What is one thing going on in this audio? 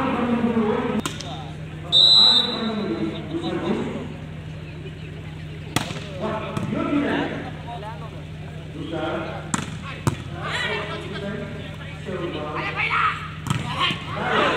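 A ball is struck by hand with sharp slaps.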